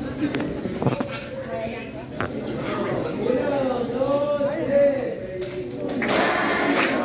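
A man speaks loudly to a group in an echoing room.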